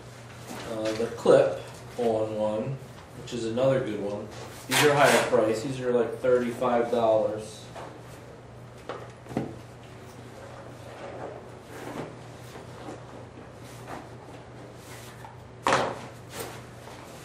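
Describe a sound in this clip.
A bag rustles as it is rummaged through.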